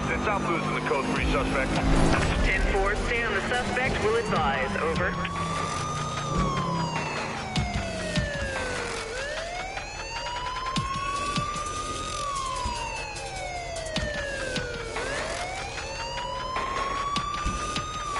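A police siren wails up and down slowly.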